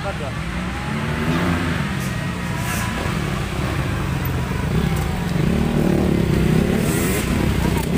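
Dirt bike engines roar and rev as the bikes race past.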